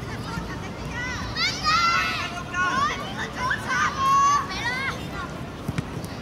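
Children shout and cheer outdoors.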